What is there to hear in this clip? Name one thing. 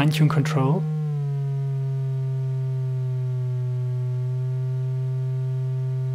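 A quick flurry of plucked guitar notes is followed by one long, steady note that rings on.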